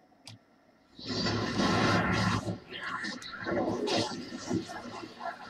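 Magic blasts crackle and whoosh in a fight.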